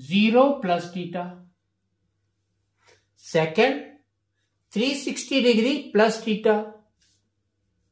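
A middle-aged man speaks clearly and calmly, as if explaining, close by.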